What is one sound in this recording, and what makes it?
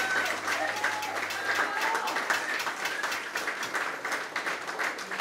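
A live band plays loudly indoors.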